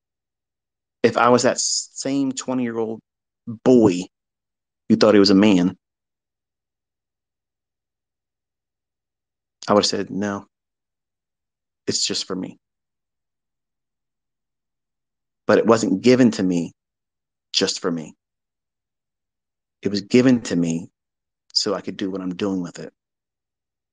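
A man speaks in short bursts with pauses between.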